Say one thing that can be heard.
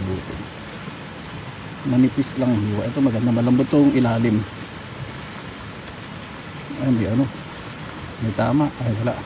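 A knife scrapes and cuts through soft mushroom flesh.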